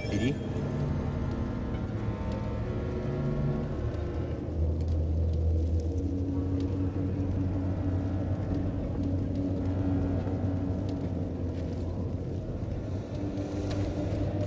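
A lightsaber hums with a low, steady buzz.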